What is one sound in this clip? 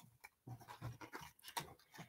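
A hand brushes over a soft cloth.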